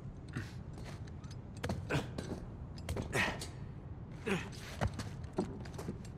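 Hands and boots scrape and thud against metal bars and stone while climbing.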